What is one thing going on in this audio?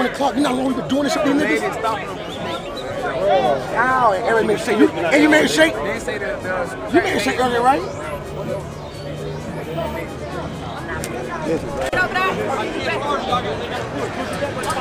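A crowd chatters in the background.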